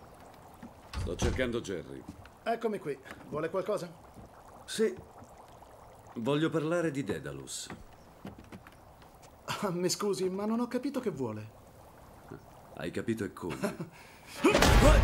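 A man speaks animatedly, up close.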